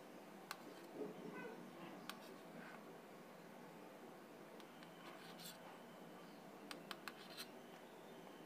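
A knife taps lightly against a metal plate.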